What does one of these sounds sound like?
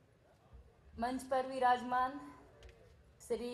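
A young woman speaks into a microphone over loudspeakers in a large hall.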